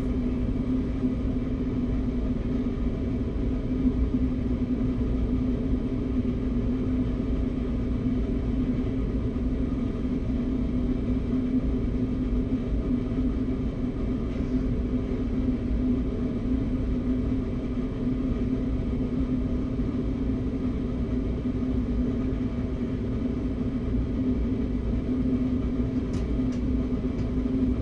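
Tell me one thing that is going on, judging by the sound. A train's motor hums steadily while standing still.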